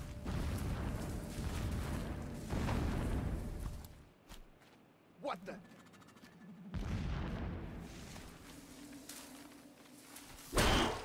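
Leaves and tall grass rustle as someone creeps through them.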